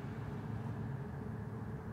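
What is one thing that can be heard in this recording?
Charcoal scratches softly across a wall.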